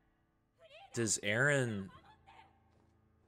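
A young man cries out loudly in surprise.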